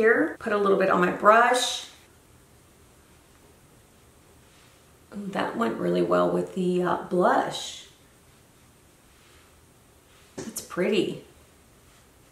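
A woman talks calmly and close to a microphone.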